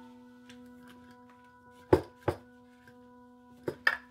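A glass jar is set down on a stone counter with a knock.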